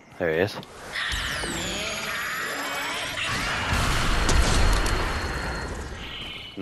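A blast of energy roars and crackles.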